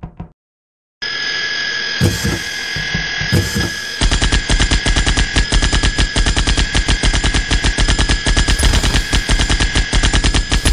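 Circular saw blades whir as they spin.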